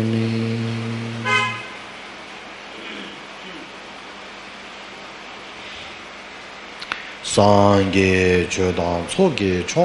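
A man chants in a deep, drawn-out voice close by.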